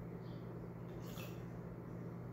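Water trickles into a small container.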